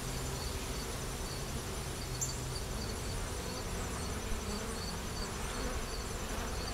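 Bees buzz steadily around an open hive.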